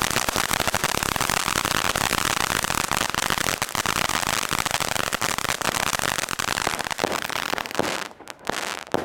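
A firework fountain sprays sparks with a rushing hiss.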